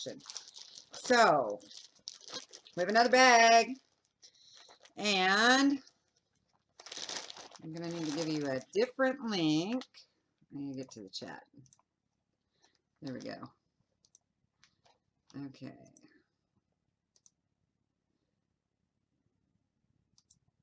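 A plastic bag crinkles and rustles in a woman's hands.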